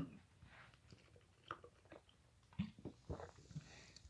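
A young man gulps a drink.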